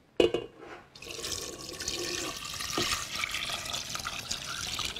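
Water pours from a metal bowl into a pot.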